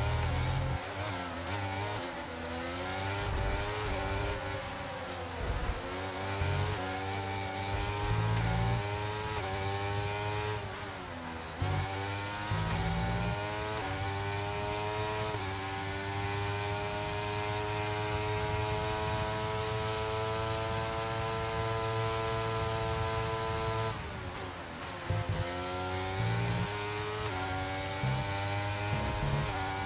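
A racing car engine screams close by, rising in pitch and dropping sharply with each gear change.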